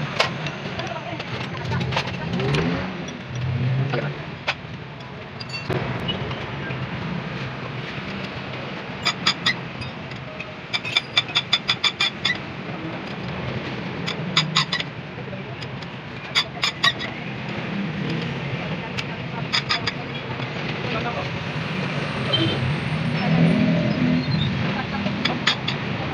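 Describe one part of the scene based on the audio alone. A wrench clicks and clinks against metal engine parts.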